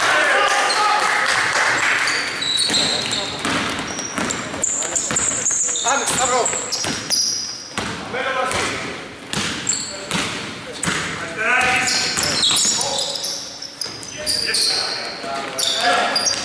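Sneakers squeak on a hardwood floor in an echoing hall.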